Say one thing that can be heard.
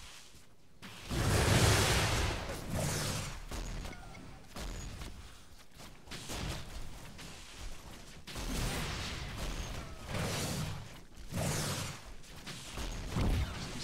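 Loud blasts boom.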